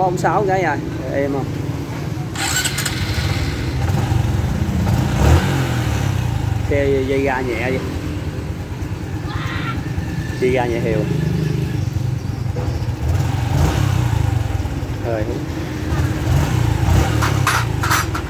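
A scooter engine idles with a low, steady rumble close by.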